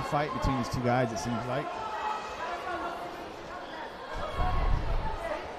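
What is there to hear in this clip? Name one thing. A crowd murmurs and cheers in a large hall.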